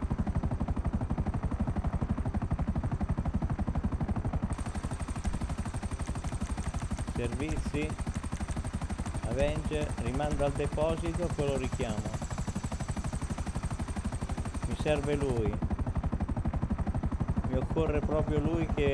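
A helicopter's rotor thumps steadily and fast, close by.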